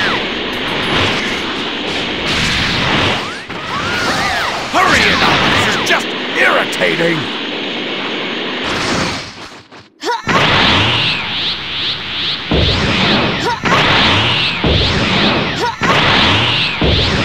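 Energy blasts explode with loud booms.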